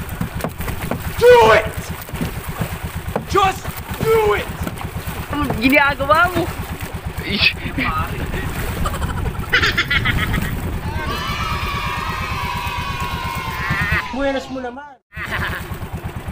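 Water splashes against a small boat at sea.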